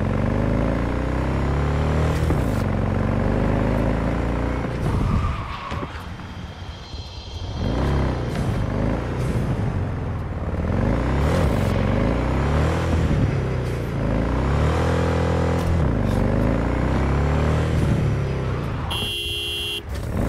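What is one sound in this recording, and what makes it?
A motorcycle engine roars and revs up and down as it speeds along.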